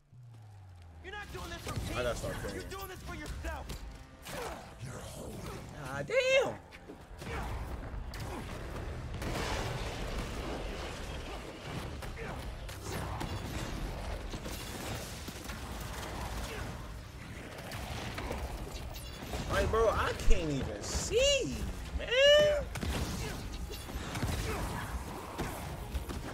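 Video game punches and impacts thud and crash.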